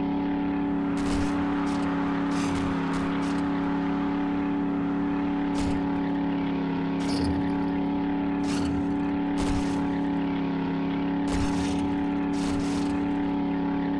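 A truck bumps and thuds over rough ground.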